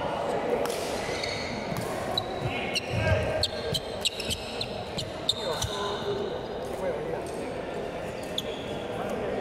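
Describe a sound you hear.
Sports shoes squeak on a wooden floor.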